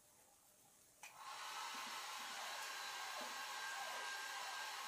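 A hair dryer blows with a steady whirring rush.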